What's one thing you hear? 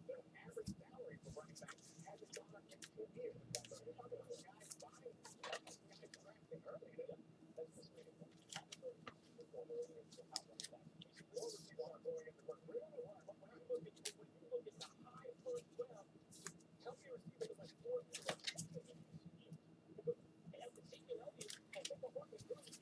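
Plastic card cases click and clack as they are handled.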